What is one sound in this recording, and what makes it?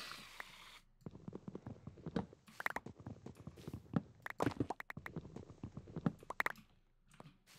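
A pickaxe chips and knocks repeatedly at wooden blocks.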